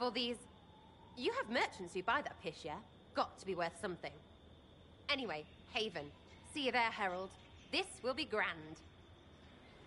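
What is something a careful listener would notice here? A young woman speaks with animation, close and clear.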